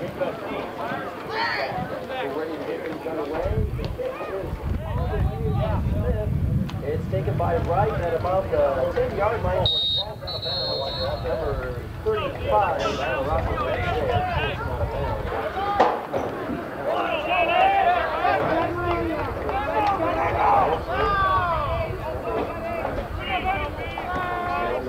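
Many young men talk and shout nearby outdoors.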